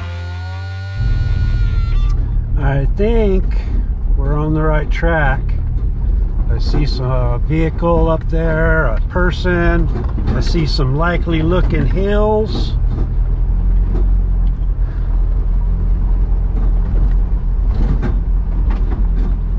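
A pickup truck drives along, its engine rumbling as heard from inside the cab.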